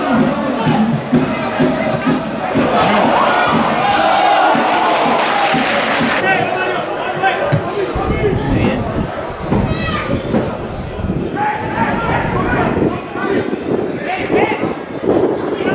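A crowd of spectators chatters and calls out close by, outdoors.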